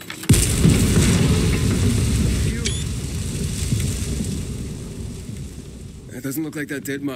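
A loud explosion booms and rumbles, then slowly dies away.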